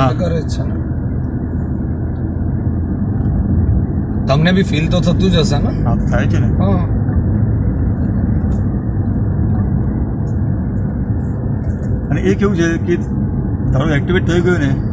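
A car engine hums steadily as tyres roll over a paved road.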